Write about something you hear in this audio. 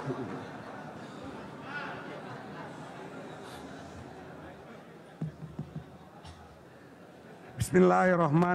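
A crowd murmurs softly in a large hall.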